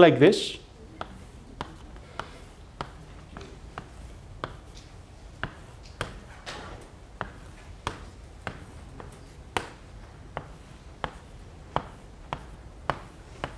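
Chalk taps sharply and repeatedly on a blackboard.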